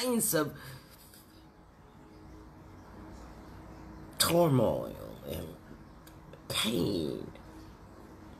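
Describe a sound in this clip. An elderly woman speaks calmly and close up, in short bursts with pauses.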